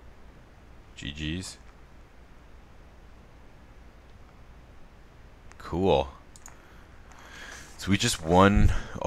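A man speaks briefly into a close microphone, with pauses in between.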